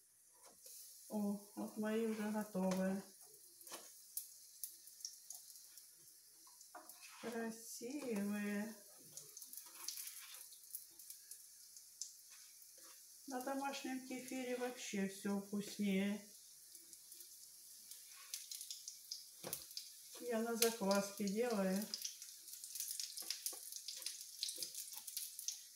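Pancakes sizzle in oil in a frying pan.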